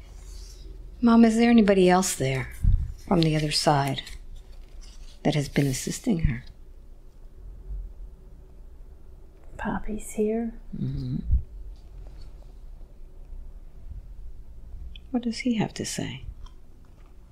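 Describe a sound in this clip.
A woman speaks slowly and softly, close to a microphone, in short bursts with pauses.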